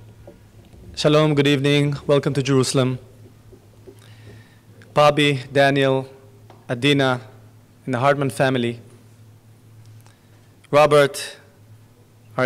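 A man speaks slowly through a microphone, with pauses.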